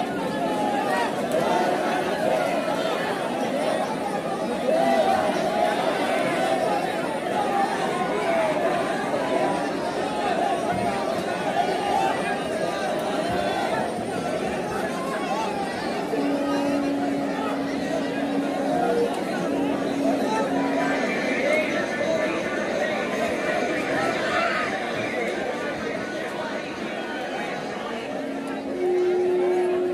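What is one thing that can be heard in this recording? A large crowd of men shouts and chants loudly outdoors.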